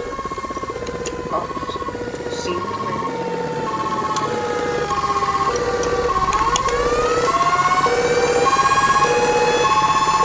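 A siren wails, sliding slowly down and then rising again.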